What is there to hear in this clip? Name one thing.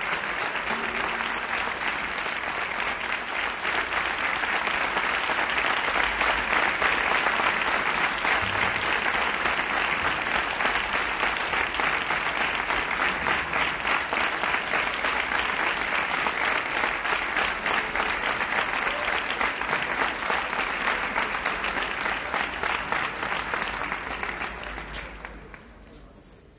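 A large crowd applauds loudly and the clapping fades away at the end.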